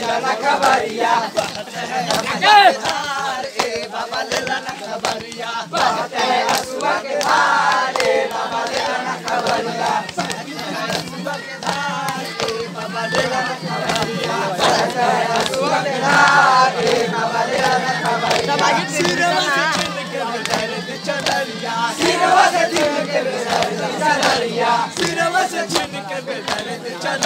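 Hands clap in a rhythm.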